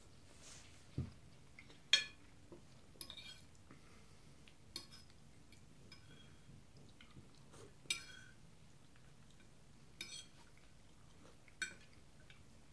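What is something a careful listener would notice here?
A fork clinks and scrapes on a plate.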